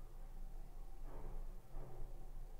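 A tube of glue squeezes softly.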